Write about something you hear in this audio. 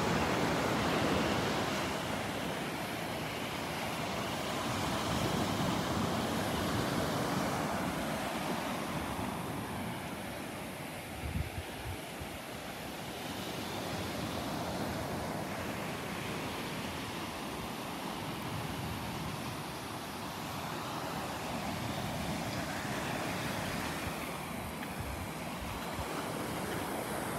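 Wind blows outdoors, rustling leaves and rumbling past.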